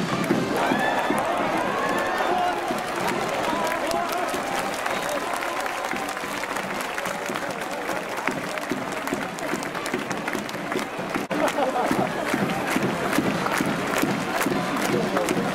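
A large crowd cheers and chants in an open stadium.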